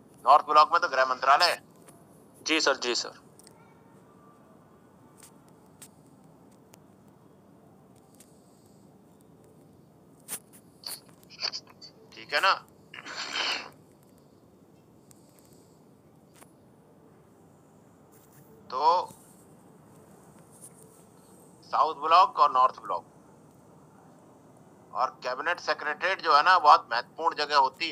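A middle-aged man speaks in short bursts over an online call.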